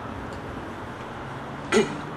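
A man speaks calmly through a microphone outdoors.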